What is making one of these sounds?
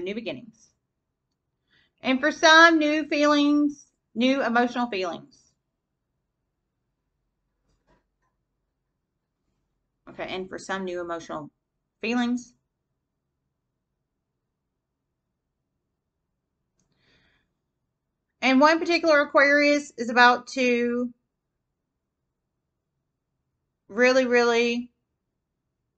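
A woman speaks calmly close by, in short phrases with pauses.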